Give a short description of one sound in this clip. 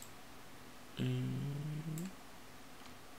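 A computer alert chime sounds once.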